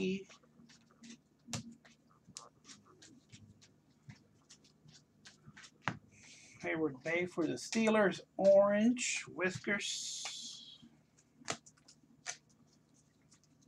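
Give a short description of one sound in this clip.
Trading cards slide and click as they are shuffled by hand.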